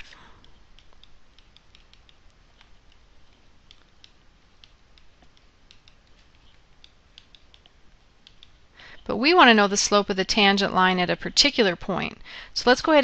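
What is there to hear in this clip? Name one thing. A pen scratches and taps faintly while writing.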